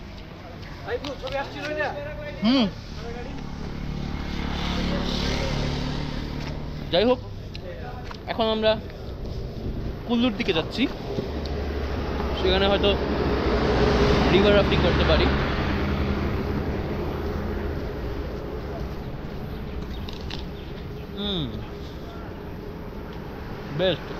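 A young man talks up close, with animation.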